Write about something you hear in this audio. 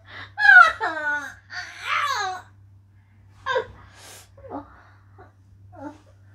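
A young woman whines in a high, drawn-out voice close by.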